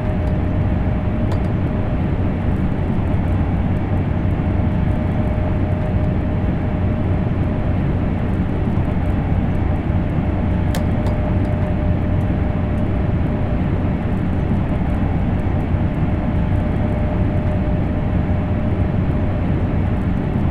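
A steady electric motor whine hums inside the train cab.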